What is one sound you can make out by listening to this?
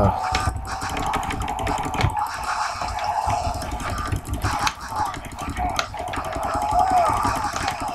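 Zombies snarl and groan up close.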